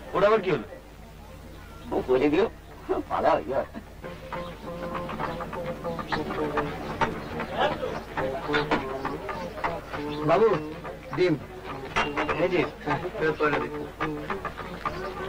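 An adult man talks in conversation, close by.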